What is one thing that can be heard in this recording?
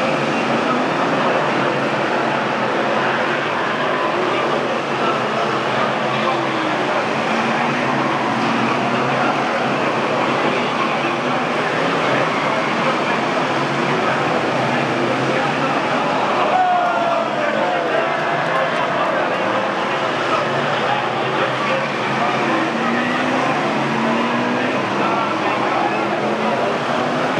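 Racing car engines roar loudly around a track.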